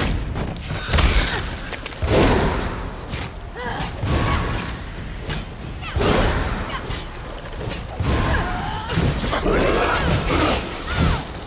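Heavy weapon blows land with loud thuds and crunches.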